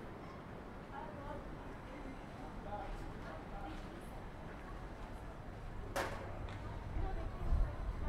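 Men and women chatter and murmur along a busy outdoor street.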